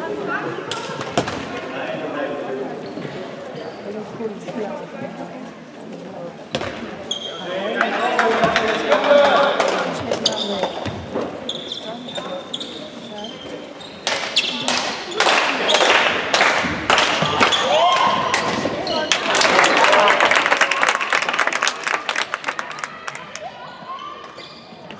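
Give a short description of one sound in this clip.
Young women shout and call out to each other.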